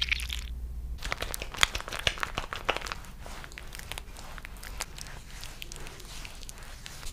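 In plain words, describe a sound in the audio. Hands rub wet lather over skin with squishing, crackling sounds.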